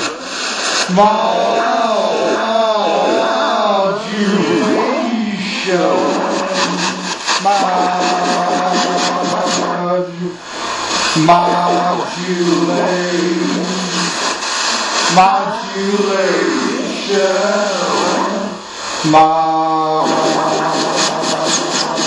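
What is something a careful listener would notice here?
A low steady electronic drone hums underneath.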